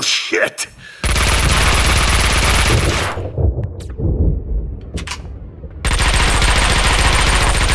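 Automatic gunfire rattles rapidly.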